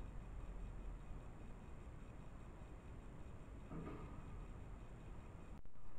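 A bird chirps nearby.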